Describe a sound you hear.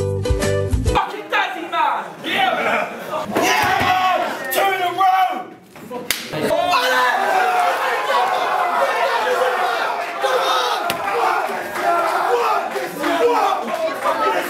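A crowd of young men cheers and shouts excitedly.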